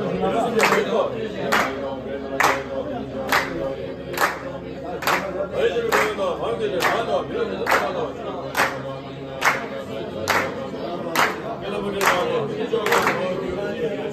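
Many hands clap together in a slow, even beat.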